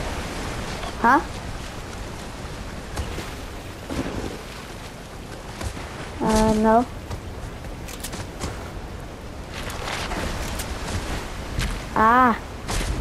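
A creature gives short, rising high-pitched cries.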